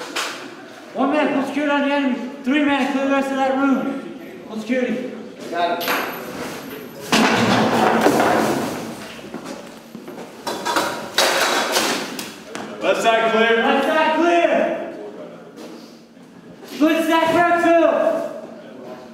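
A man speaks firmly and clearly, close by.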